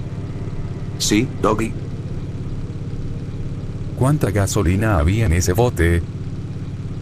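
A young man calls out and asks questions with animation.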